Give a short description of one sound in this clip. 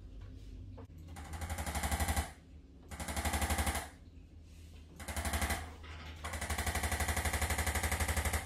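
A massage gun buzzes and whirs in short bursts.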